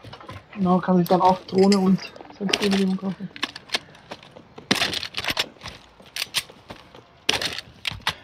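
A rifle's metal parts click and clack as it is handled.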